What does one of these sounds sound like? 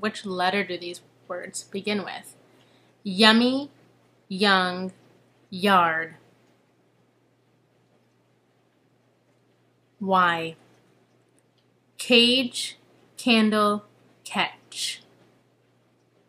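A young woman speaks calmly and close up, in short phrases with pauses.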